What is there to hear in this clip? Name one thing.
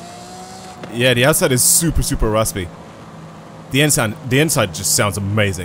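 A car engine roars loudly in sudden bursts of revving.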